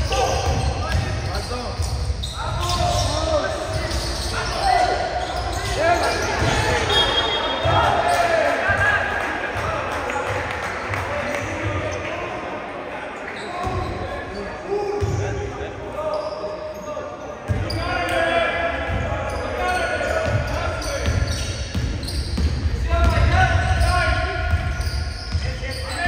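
Players call out to each other in a large echoing gym.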